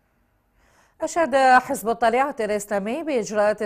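A woman reads out news clearly through a microphone.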